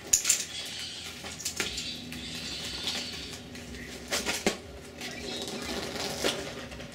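A child's plastic tricycle rumbles along a road.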